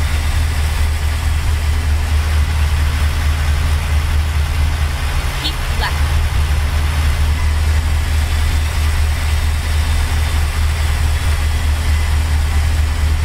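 A truck engine hums steadily at cruising speed.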